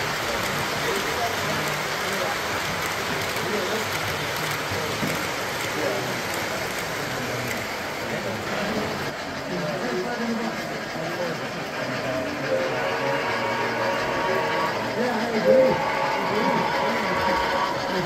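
Model trains rumble along metal tracks.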